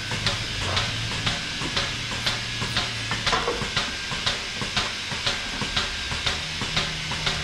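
Milking machines pulse with a steady, rhythmic clicking hiss.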